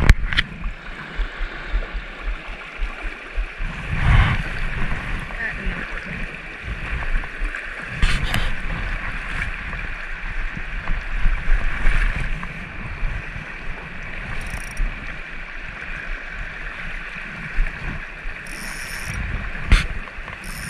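A shallow stream rushes and babbles over rocks close by.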